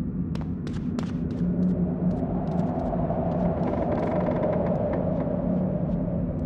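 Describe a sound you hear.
Quick footsteps patter on the ground.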